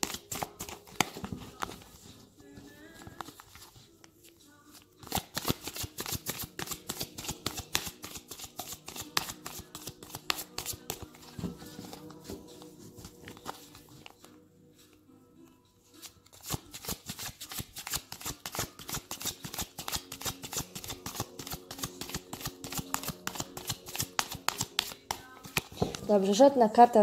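Playing cards are shuffled by hand, with quick soft clicks and riffles close by.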